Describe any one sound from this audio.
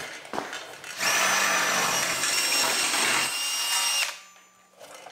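A cordless drill whines loudly as it bores through sheet metal.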